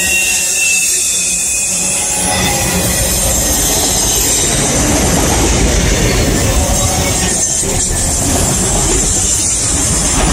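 A freight train rumbles past close by, its wheels clattering steadily on the rails.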